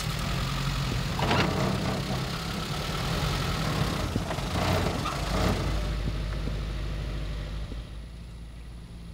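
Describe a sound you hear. A vehicle engine rumbles.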